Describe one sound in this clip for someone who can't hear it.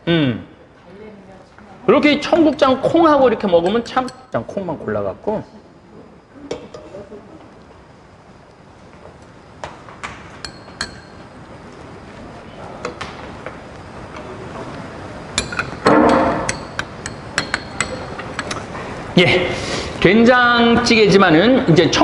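A spoon clinks against a ceramic bowl.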